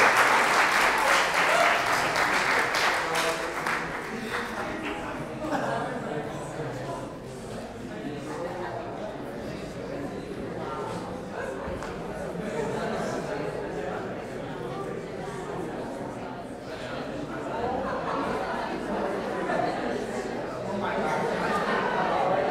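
Young men talk casually in a large echoing hall.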